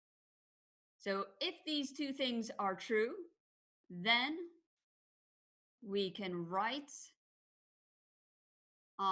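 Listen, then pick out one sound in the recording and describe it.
A middle-aged woman speaks calmly into a microphone, in short phrases with pauses.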